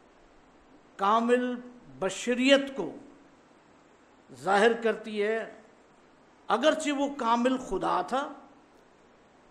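An older man reads aloud slowly into a microphone, in short phrases with pauses.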